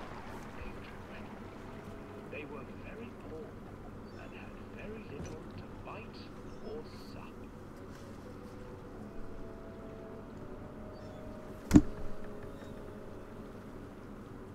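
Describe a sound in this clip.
Water laps softly against a pedal boat as it glides along.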